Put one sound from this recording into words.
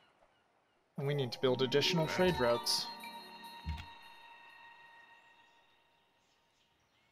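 A short musical fanfare plays and rings out.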